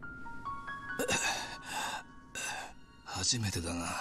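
A man speaks weakly in a strained voice, close by.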